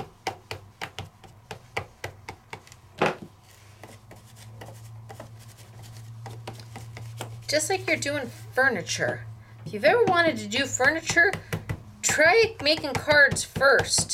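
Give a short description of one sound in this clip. A foam tool taps and dabs on paper.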